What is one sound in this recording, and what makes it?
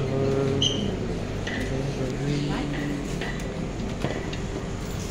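A glass door swings open and clunks.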